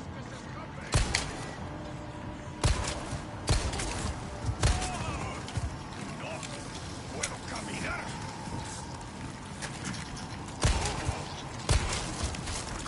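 Pistol shots ring out one after another.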